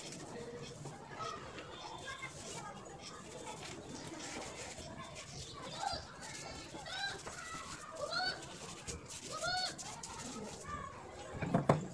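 Sandpaper rubs on a metal tap.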